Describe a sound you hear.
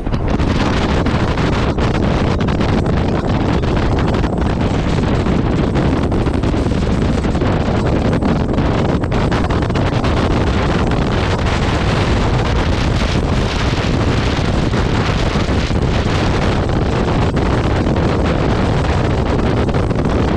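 Wind roars loudly against a rider's helmet at speed.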